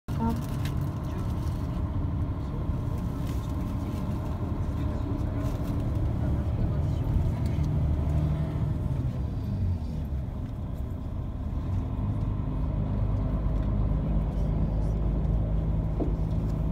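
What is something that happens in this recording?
A vehicle engine hums steadily from inside a moving car.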